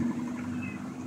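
Large leaves rustle as a plant is pulled.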